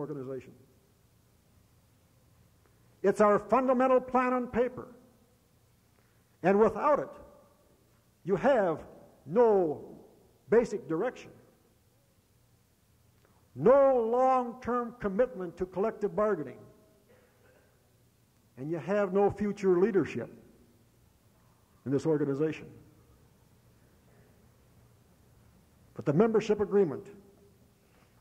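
A man speaks calmly in short phrases with pauses.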